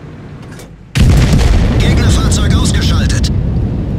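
A shell explodes with a loud blast.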